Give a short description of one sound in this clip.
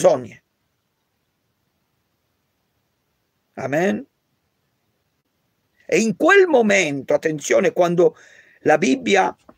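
A man speaks calmly and earnestly close to a microphone, with pauses.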